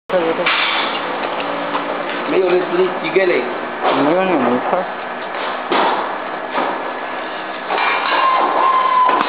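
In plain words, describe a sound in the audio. A packaging machine whirs and clatters steadily as its rotary table turns.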